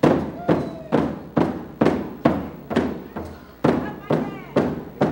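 A hand drum beats in a steady, slow rhythm with a booming echo.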